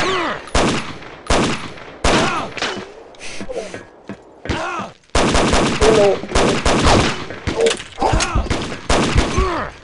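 A handgun fires sharp shots.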